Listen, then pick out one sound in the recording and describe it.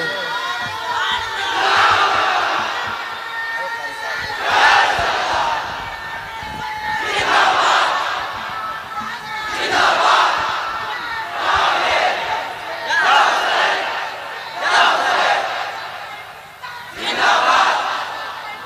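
A young man speaks loudly into a microphone in bursts, heard through loudspeakers.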